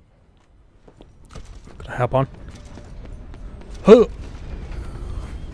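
Footsteps run across wooden boards.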